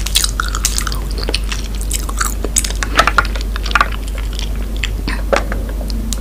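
A woman sips a drink loudly through a straw.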